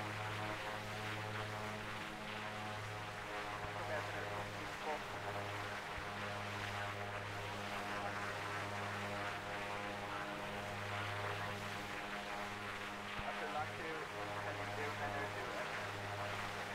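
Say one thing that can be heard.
A single-engine piston light aircraft drones in cruise flight.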